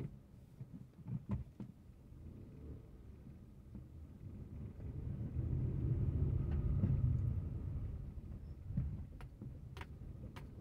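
A car engine hums low and steady in slow traffic, swelling louder for a while.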